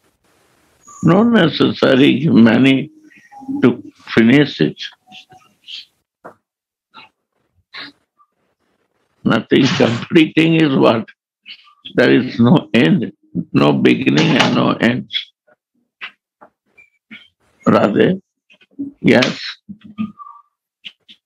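An elderly man speaks calmly through an online call, with pauses.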